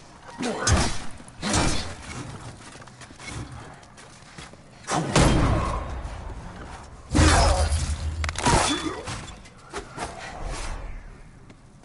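Metal weapons clash and strike loudly in a fight.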